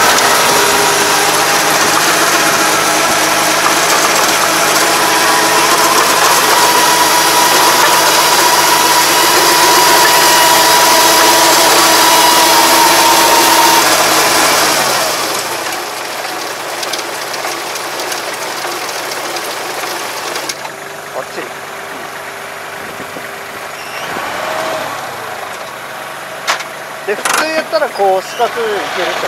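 A rotary tiller churns through soil.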